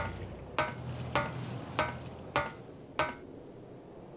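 Footsteps clank on ladder rungs.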